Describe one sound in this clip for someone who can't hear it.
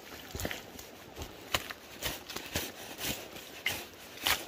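Boots squelch in thick mud.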